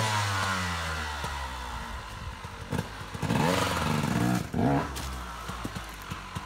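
A dirt bike engine idles nearby with a low rumble.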